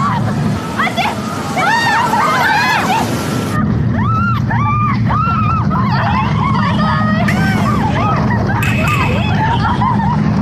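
Young women shriek and shout excitedly.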